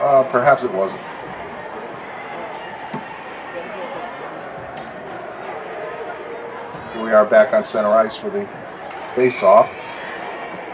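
Spectators and players shout loudly in an echoing rink.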